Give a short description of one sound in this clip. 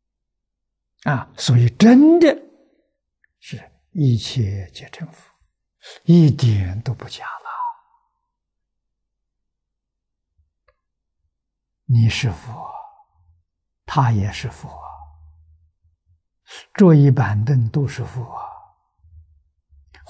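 An elderly man speaks calmly and slowly into a close microphone, in short phrases with pauses.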